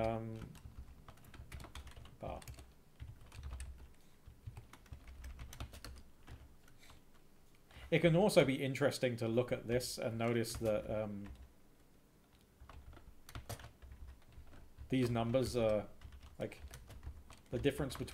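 Computer keys click as someone types.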